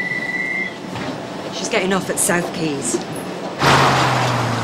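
A woman speaks urgently into a handheld radio, close by.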